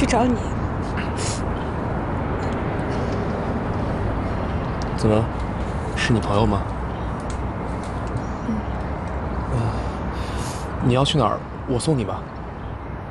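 A young woman speaks softly and tearfully.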